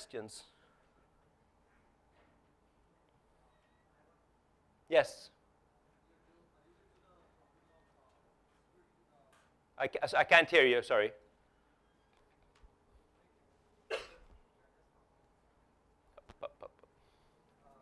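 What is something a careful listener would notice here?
A man speaks in short bursts through a microphone in a large room.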